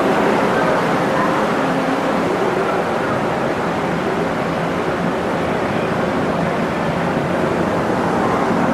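Wind blows across an open deck.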